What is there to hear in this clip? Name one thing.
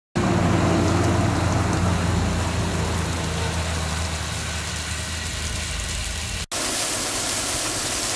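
Water gushes and splashes hard from a pipe.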